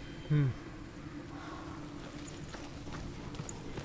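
Bare feet pad on stone steps.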